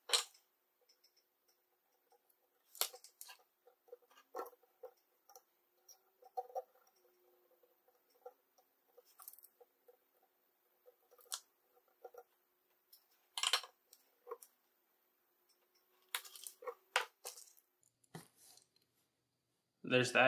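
Wires and metal terminals click and rustle as hands handle them.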